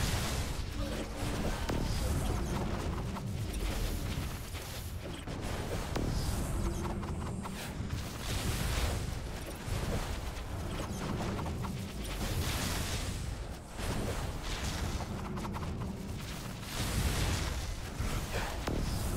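Electric bolts crackle and zap continuously.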